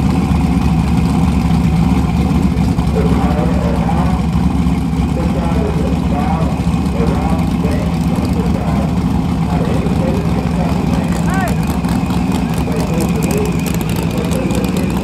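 People talk in the background outdoors.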